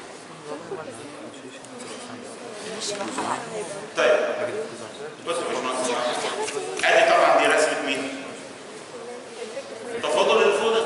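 An elderly man lectures aloud in a room with some echo.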